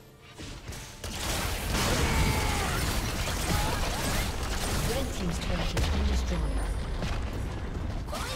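Video game combat sound effects clash and whoosh.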